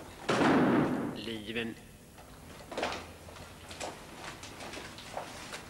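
Objects knock and scrape as they are handled and set down on a wooden table.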